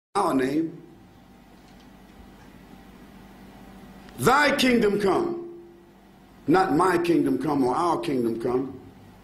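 A man speaks with emphasis through a microphone, in pauses, in a hall with some echo.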